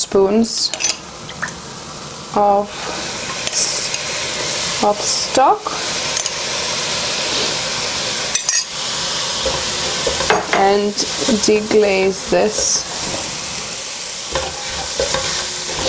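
Vegetables sizzle steadily in a hot pot.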